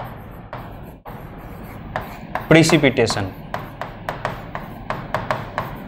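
A pen taps and scrapes on a writing board.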